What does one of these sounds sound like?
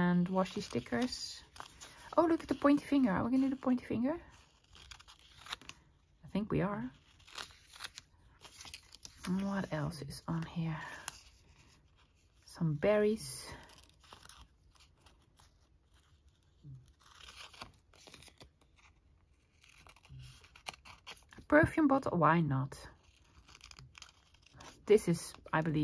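Scissors snip through thin paper.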